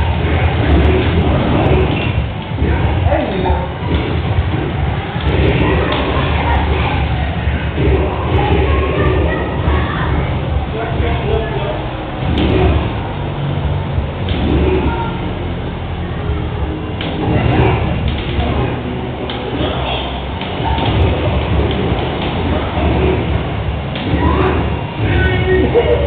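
Fighting game sound effects of punches, kicks and blasts play through a television speaker.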